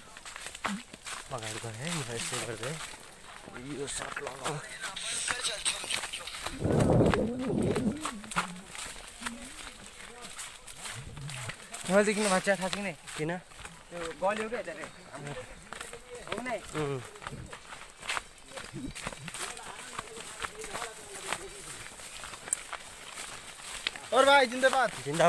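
Young men talk casually nearby, outdoors.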